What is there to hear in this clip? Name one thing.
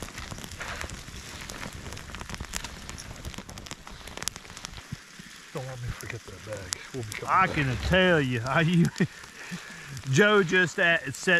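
A campfire crackles and pops.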